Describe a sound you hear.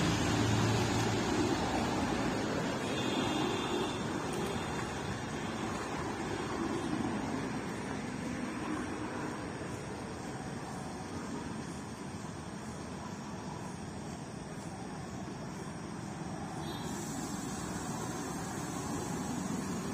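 Water splashes under a vehicle's tyres.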